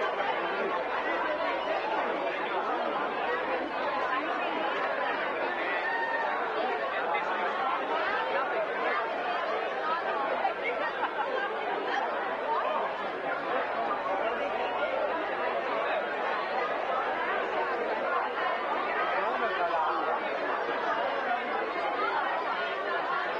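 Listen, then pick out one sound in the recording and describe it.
A crowd of men and women chatters loudly all around in a large echoing hall.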